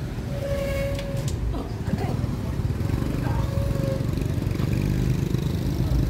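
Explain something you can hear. Motorbikes ride past on a busy street.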